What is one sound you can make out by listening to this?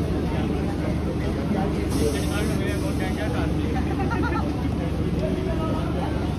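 Men's voices chatter nearby over the train noise.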